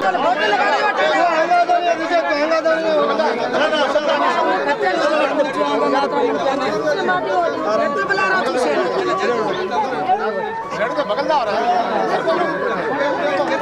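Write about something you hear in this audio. A man speaks loudly with animation.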